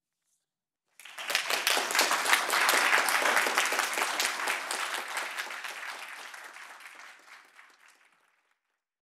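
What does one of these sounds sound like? An audience applauds, then the applause slowly fades away.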